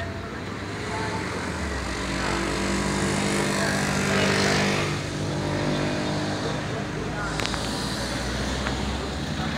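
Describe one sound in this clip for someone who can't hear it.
A marching band plays brass music close by.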